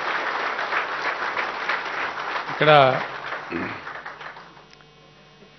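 An audience applauds in a large hall, and the clapping fades away.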